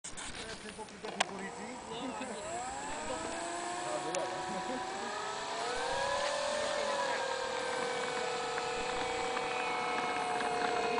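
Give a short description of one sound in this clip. A model plane's engine buzzes, revs up and holds a high, steady whine.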